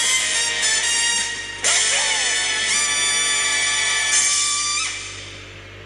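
Cheerful video game music plays through a television speaker.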